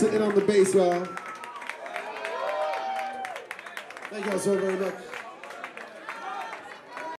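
A man sings loudly into a microphone.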